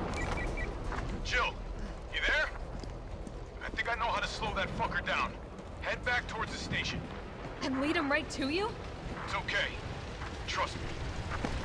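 A young woman speaks urgently into a radio, close by.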